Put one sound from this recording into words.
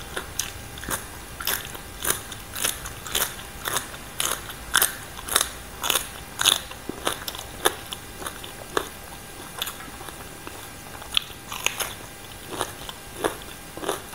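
Someone crunches and chews raw vegetables close to a microphone.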